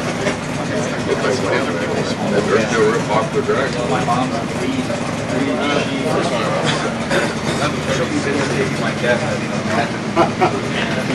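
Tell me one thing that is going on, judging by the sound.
A motorcycle engine idles with a steady, rough rattle.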